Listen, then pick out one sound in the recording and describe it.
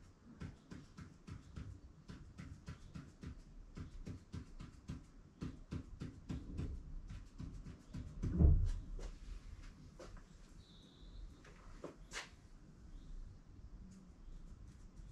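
A marker pen taps and scratches quickly against a hard surface.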